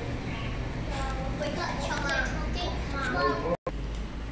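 A young girl speaks brightly, close by.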